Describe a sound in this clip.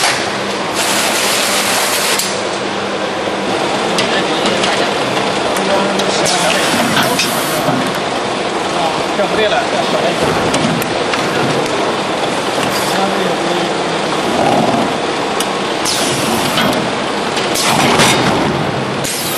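Factory packing machinery hums and clatters.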